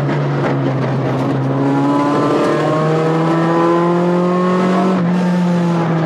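A rally car engine roars at full throttle from inside the cabin.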